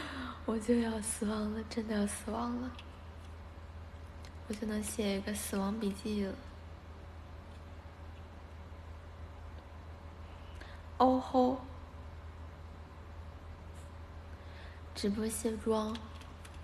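A young woman speaks softly and playfully close to a microphone.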